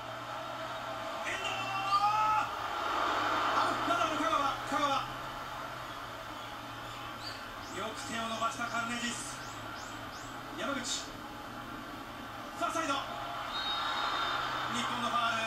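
A man nearby exclaims excitedly.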